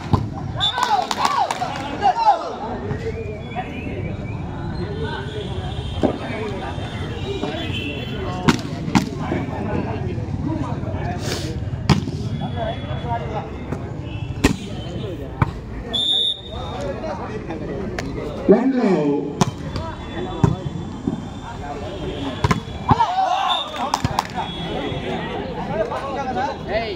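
A crowd of young men chatters and shouts outdoors.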